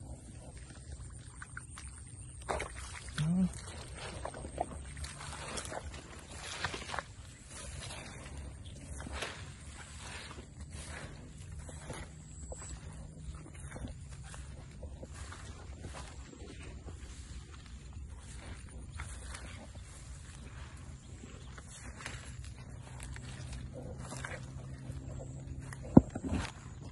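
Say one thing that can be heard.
Footsteps rustle through dry grass and squelch on wet ground.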